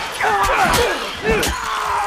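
Blows thud during a close struggle.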